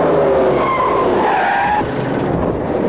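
Car tyres screech on a smooth floor.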